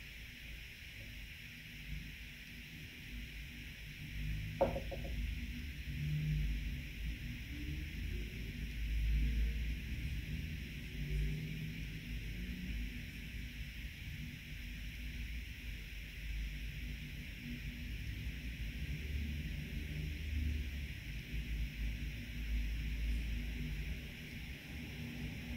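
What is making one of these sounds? A paintbrush softly dabs and strokes across canvas.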